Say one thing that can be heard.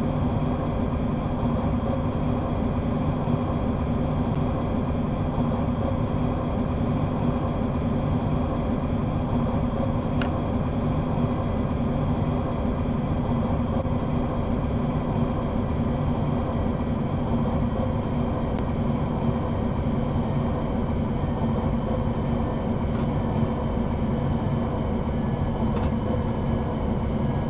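Train wheels rumble and clatter over rails.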